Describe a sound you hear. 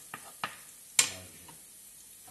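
A glass lid clinks onto a pot.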